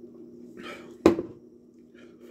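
A glass knocks down onto a table.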